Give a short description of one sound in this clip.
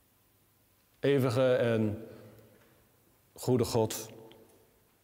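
A man sings a short phrase in a reverberant room.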